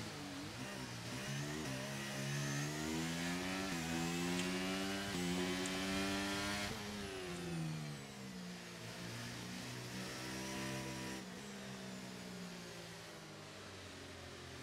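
Rain spray hisses against a racing car.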